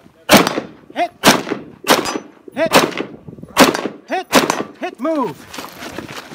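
A rifle fires a series of loud, sharp shots outdoors that echo across the open hills.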